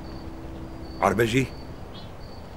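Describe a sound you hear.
A man speaks a few words up close.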